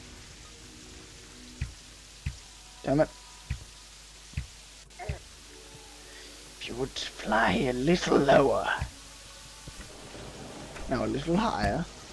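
A bow twangs as arrows are shot, again and again.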